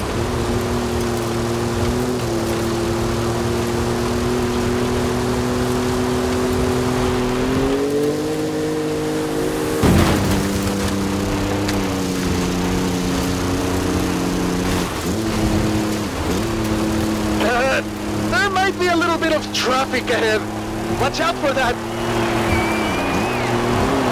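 A car engine roars steadily, rising and falling in pitch.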